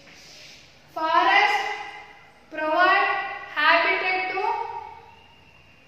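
A young woman recites loudly in a sing-song voice nearby.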